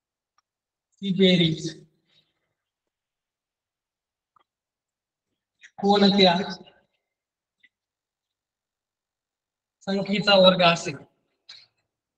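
A man speaks in short phrases, calmly explaining.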